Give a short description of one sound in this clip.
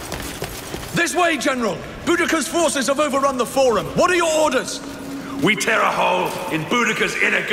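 A man shouts urgently nearby.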